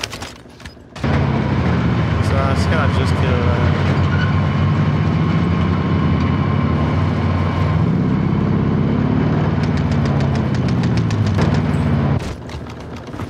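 A truck engine roars and revs as it drives.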